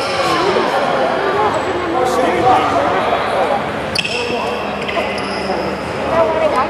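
Young men and spectators talk and call out in a large echoing gym.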